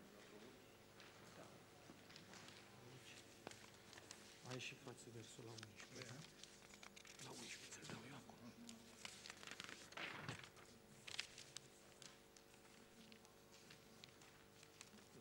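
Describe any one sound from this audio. Paper rustles and shuffles close by.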